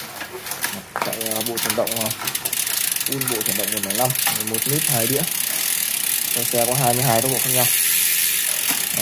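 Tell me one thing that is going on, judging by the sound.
A bicycle wheel's freewheel buzzes steadily as the wheel spins.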